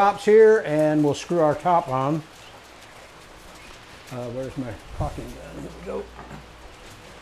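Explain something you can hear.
An older man talks calmly to the listener, close by.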